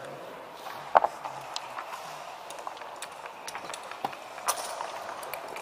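Game pieces click against each other as they are moved on a board.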